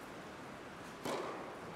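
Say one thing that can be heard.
A tennis racket strikes a ball with a sharp pop that echoes through a large hall.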